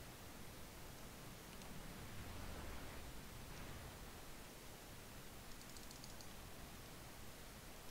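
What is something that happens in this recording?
Shells splash heavily into the water nearby.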